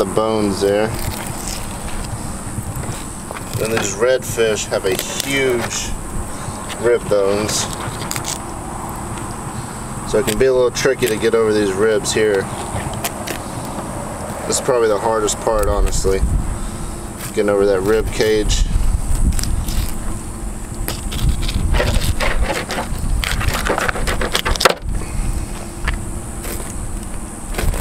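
A knife slices wetly through fish flesh.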